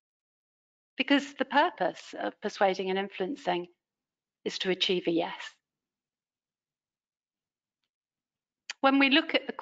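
A woman speaks calmly through a microphone in an online call, with pauses.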